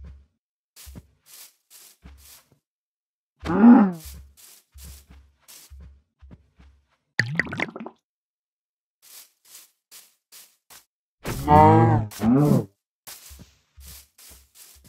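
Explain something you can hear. Footsteps crunch on grass.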